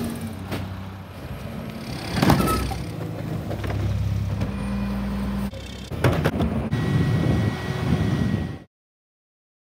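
A garbage truck engine rumbles steadily close by.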